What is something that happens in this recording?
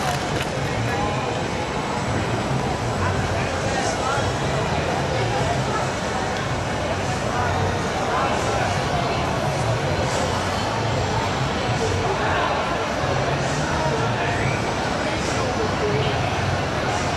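Busy street noise fills the air outdoors.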